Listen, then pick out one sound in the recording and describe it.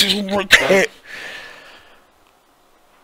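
A young man groans and sighs close to a microphone.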